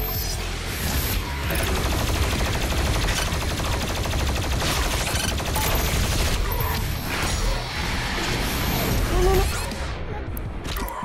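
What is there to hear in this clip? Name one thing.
A heavy gun fires rapidly with loud, crackling bursts.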